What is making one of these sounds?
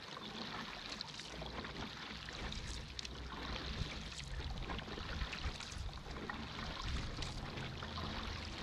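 Wind buffets loudly, outdoors on open water.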